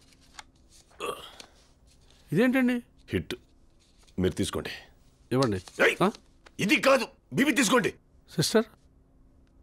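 A younger man speaks with animation.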